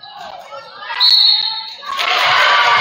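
A whistle blows sharply in a large echoing gym.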